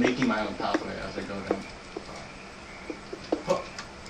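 A pickaxe chips at stone.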